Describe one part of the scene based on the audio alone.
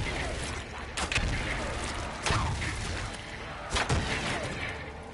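Fiery blasts burst with loud bangs.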